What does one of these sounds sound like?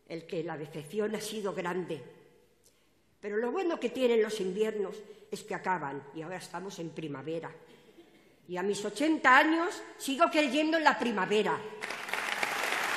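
An elderly woman speaks into a microphone over loudspeakers in a large hall.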